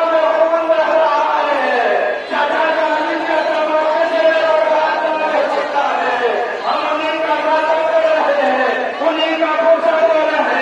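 A large crowd of men chants loudly and rhythmically outdoors.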